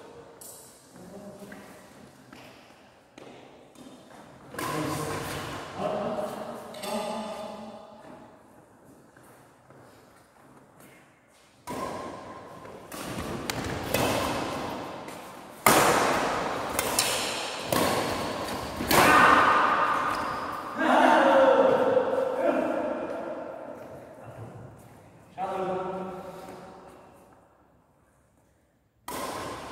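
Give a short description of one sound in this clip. Rackets strike a shuttlecock in an echoing hall.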